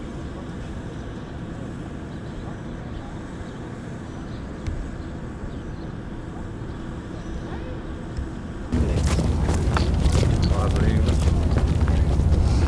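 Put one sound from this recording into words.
Footsteps shuffle on a paved path.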